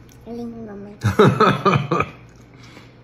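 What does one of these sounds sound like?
A toddler laughs loudly up close.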